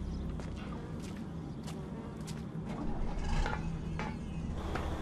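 Footsteps thud on metal ladder rungs.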